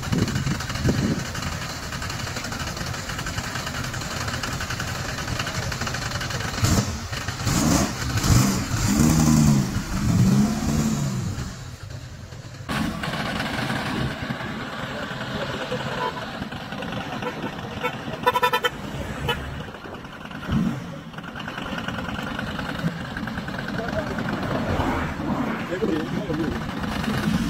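A vehicle's engine rumbles as the vehicle rolls slowly along.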